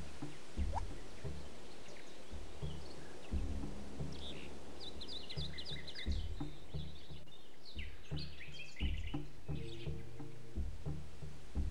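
Soft interface clicks sound as menu options are selected.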